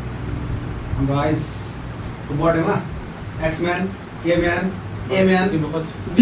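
A man talks nearby in a calm voice.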